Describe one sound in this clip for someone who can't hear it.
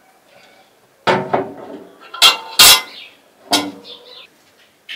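Water pours into a metal pot.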